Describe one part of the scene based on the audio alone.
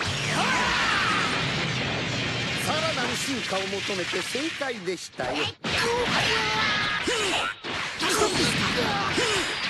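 Energy beams whoosh and crackle.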